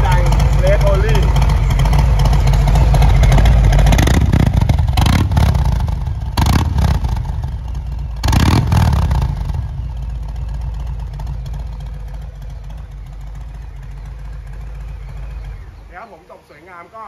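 A motorcycle engine idles with a deep, loud rumble.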